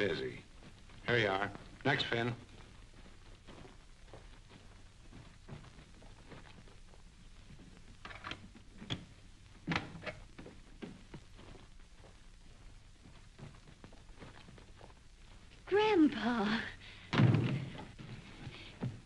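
A young woman speaks with feeling.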